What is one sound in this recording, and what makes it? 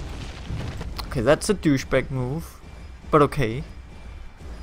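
A young man speaks into a close microphone with animation.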